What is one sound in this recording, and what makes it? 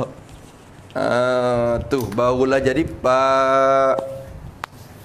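A man chants slow, drawn-out syllables nearby.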